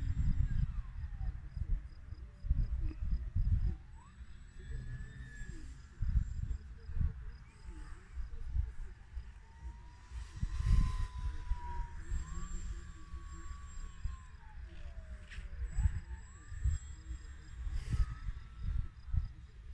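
Wind gusts rumble against the microphone outdoors.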